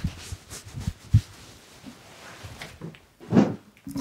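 A towel rubs against hair.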